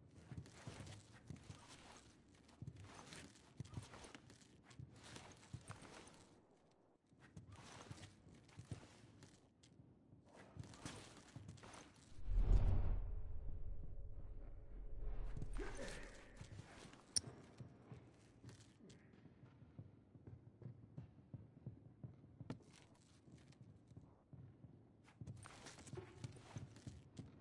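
Footsteps shuffle softly across a hard floor.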